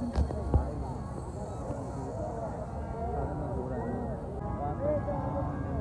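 A large crowd of men chatters outdoors.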